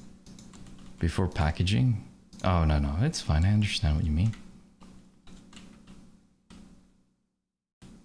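Keys on a keyboard click.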